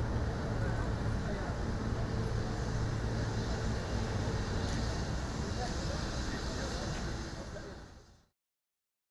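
A jet engine hums steadily in the distance.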